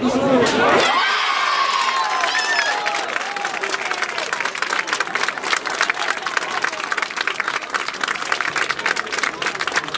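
Spectators clap and cheer nearby.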